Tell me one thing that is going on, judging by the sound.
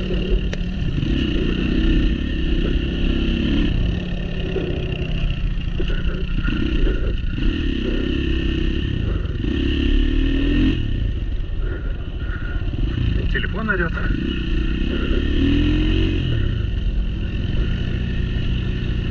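A dirt bike engine drones up close, rising and falling as the rider throttles.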